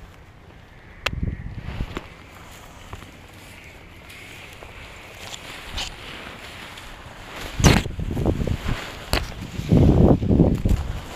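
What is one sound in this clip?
Harness straps and fabric rustle and clack.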